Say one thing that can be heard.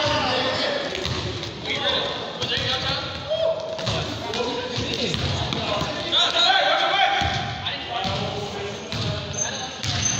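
Sneakers squeak on the gym floor.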